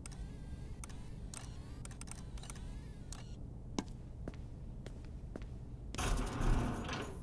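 Footsteps tap on a hard metal floor.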